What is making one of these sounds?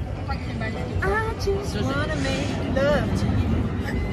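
A teenage girl exclaims excitedly nearby.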